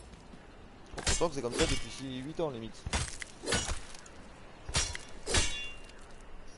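A blade chops wetly into an animal carcass.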